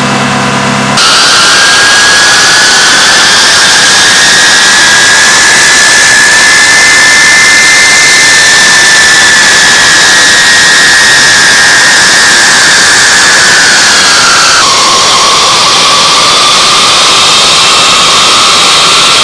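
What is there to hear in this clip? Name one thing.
Jet engines whine loudly and steadily close by.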